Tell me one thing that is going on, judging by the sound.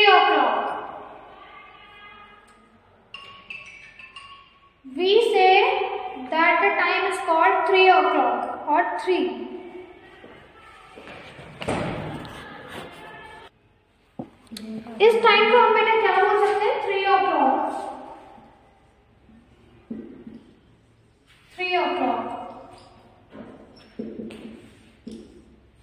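A young woman speaks calmly and clearly, as if explaining to a class.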